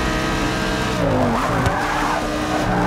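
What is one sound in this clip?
A racing car engine drops in pitch as the car brakes and shifts down.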